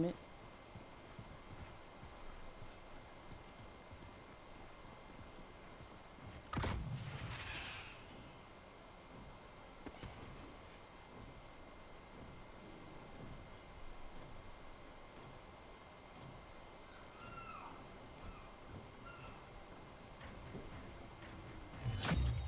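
Footsteps thud on hard ground.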